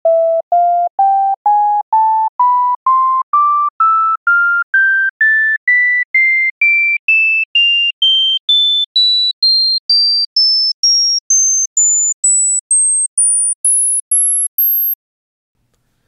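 A series of short electronic beeps steps steadily higher in pitch, one after another.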